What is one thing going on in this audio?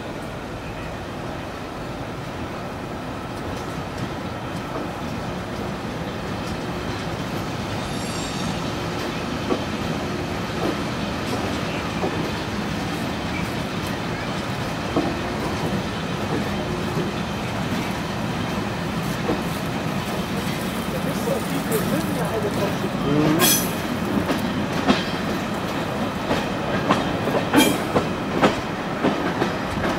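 Wind rushes past the open window of a moving train.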